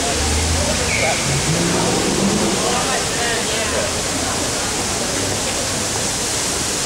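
A crowd of men chatters nearby outdoors.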